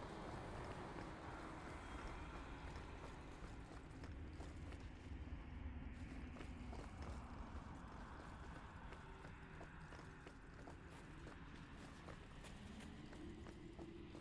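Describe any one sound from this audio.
Footsteps patter on a stone floor.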